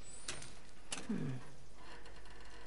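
A young woman murmurs a short, thoughtful hum up close.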